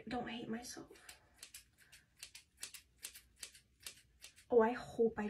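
Scissors snip repeatedly at hair.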